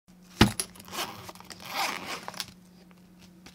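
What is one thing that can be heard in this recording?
A zipper rasps open on a fabric bag.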